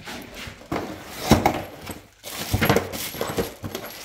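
Cardboard scrapes and rustles as it is handled.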